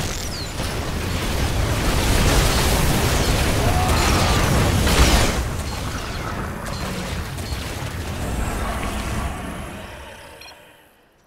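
Rapid gunfire rattles in a heavy battle.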